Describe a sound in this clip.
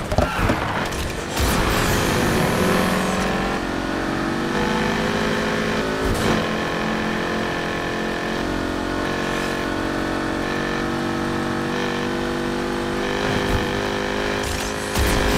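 A car engine roars steadily at high revs.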